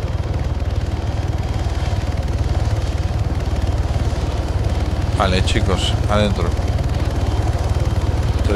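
A helicopter's rotor thumps loudly and steadily close overhead.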